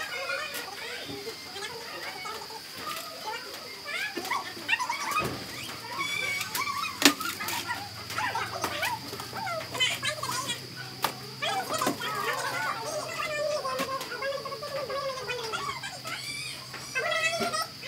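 Large banana leaves rustle and crinkle as they are handled.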